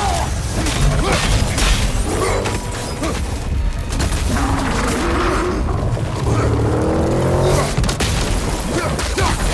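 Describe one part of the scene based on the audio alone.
Rocks explode and debris crashes down in loud bursts.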